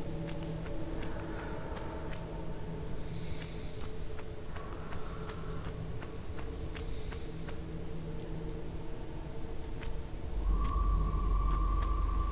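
Quick footsteps patter on sand.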